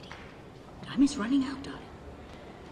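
A woman speaks quietly and intently, close by.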